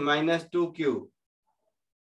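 A man explains calmly into a microphone.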